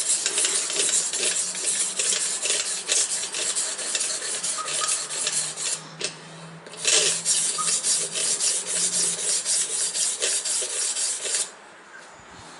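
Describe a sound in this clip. A sharpening stone scrapes back and forth along a knife blade.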